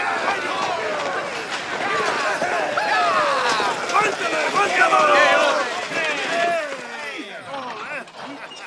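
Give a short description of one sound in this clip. Horses' hooves clatter on a hard road.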